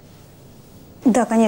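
A woman speaks briefly nearby.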